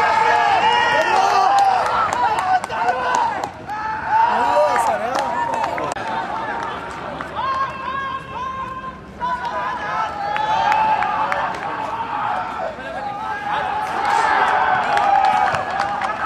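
Young men shout and call out to each other outdoors.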